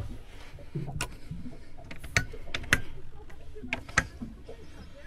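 A hand turns knobs and flips switches with sharp clicks.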